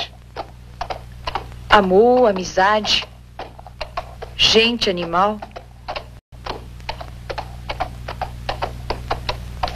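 Horses' hooves clop steadily on a dirt track.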